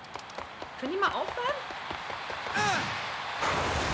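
A man exclaims excitedly close to a microphone.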